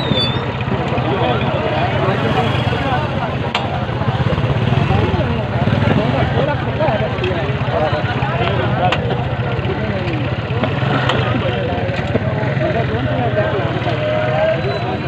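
A crowd of men chatters all around outdoors.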